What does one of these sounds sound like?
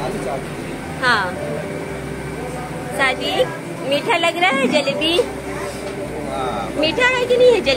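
A small child squeals and babbles close by.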